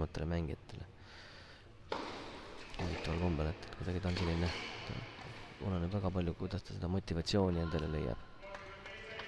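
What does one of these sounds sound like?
A tennis racket strikes a ball back and forth in a rally.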